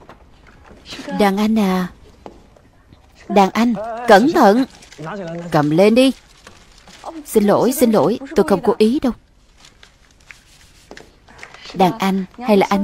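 A young woman speaks softly and playfully, close by.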